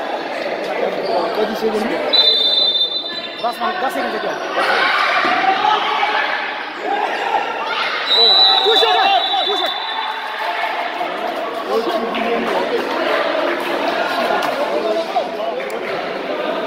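A basketball bounces on a floor.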